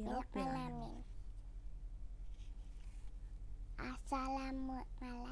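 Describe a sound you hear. A young girl speaks close to a microphone in a high, clear voice, reciting in a drawn-out singsong.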